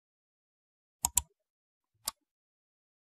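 A mouse clicks sharply a few times.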